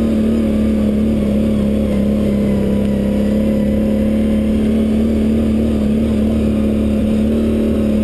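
A dirt bike engine drones steadily up close.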